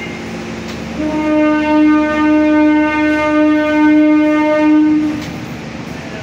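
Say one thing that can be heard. A train horn sounds loudly for a few seconds.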